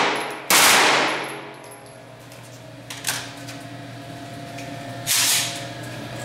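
Metal clicks and rattles as a gun is handled.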